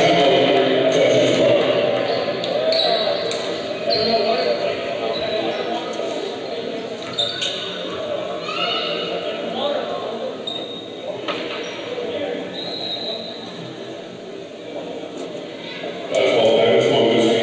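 A crowd chatters and murmurs in a large echoing gym.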